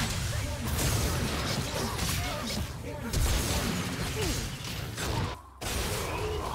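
Magic blasts and weapon hits crackle and boom in a fast video game battle.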